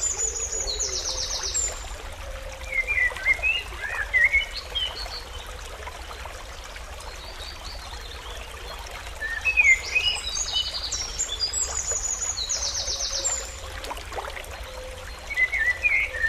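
A small bird sings in bright chirps and trills.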